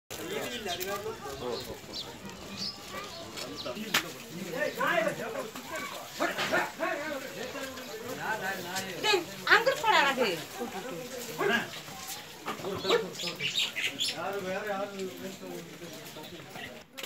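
Several men talk and call out nearby outdoors.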